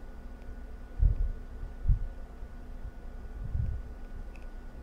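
A woman breathes slowly and deeply close to a microphone.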